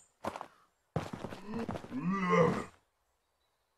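An axe strikes with a heavy, wet thud.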